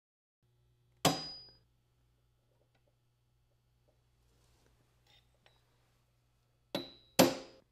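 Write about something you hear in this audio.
A hammer strikes metal with sharp ringing blows.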